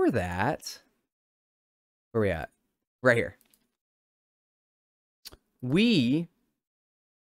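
A young man speaks in short, animated bursts close to a microphone.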